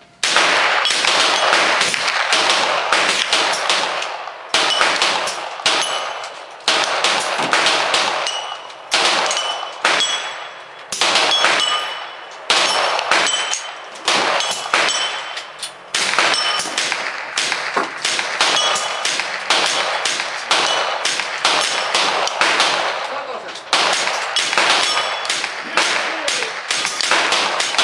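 Rapid .22 rifle shots crack outdoors.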